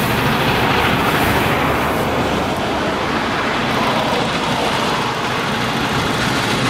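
Wind blows across open ground.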